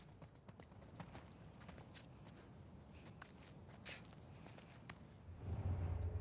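Footsteps crunch softly over leaves and debris.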